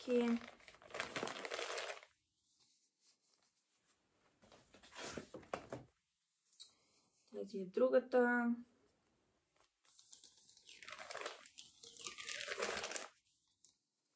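Plastic packaging rustles and crinkles in hands.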